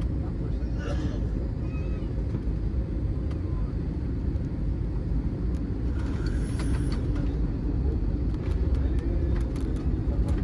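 Jet engines roar steadily from close by inside an airliner cabin.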